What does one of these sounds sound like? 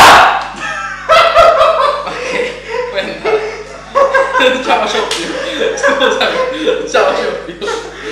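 Young men laugh loudly close by.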